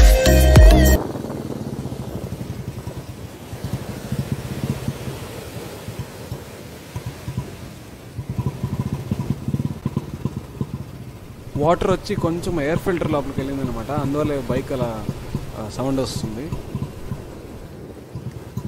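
A motorcycle engine idles and rumbles nearby.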